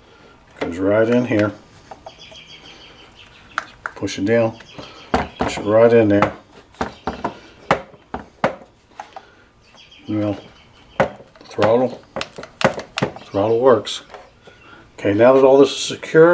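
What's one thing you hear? Small plastic parts click and tap as hands work on them.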